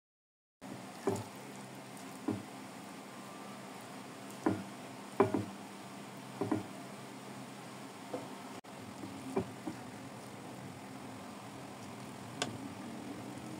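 A ladle knocks and scrapes against a plate.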